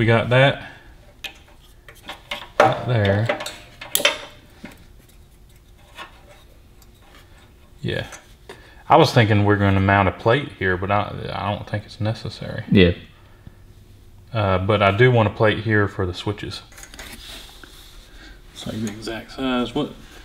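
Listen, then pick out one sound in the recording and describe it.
Small metal parts click and rattle under hands.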